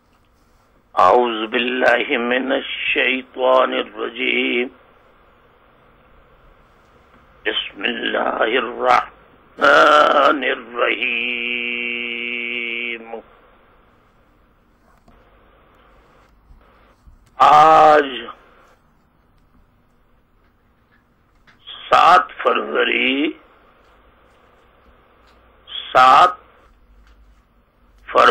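A middle-aged man speaks with emphasis through a microphone, pausing often.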